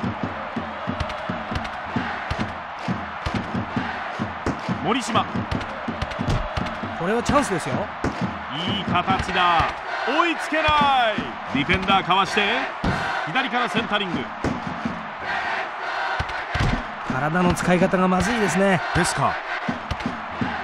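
A stadium crowd cheers and roars steadily.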